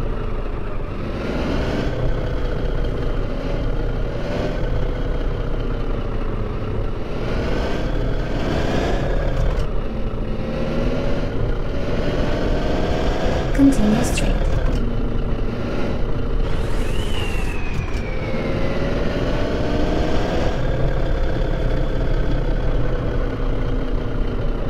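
A bus engine hums steadily, rising and falling in pitch as it speeds up and slows down.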